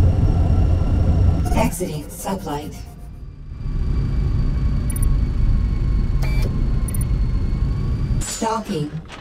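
A spaceship engine rumbles with a deep, steady roar.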